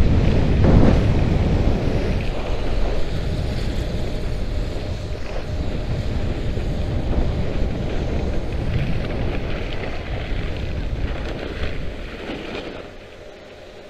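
Wind rushes loudly past a microphone outdoors.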